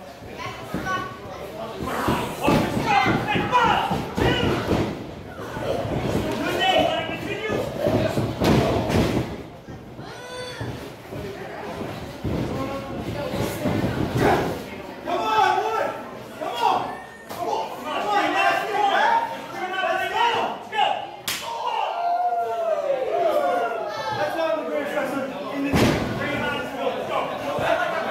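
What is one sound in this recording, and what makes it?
A crowd of spectators cheers and shouts in an echoing hall.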